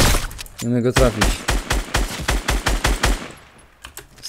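Gunshots fire in a rapid burst.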